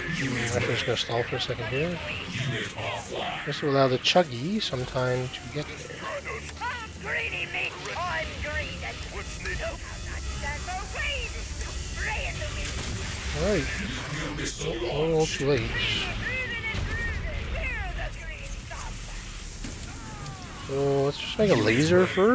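A young man talks with animation into a microphone, close up.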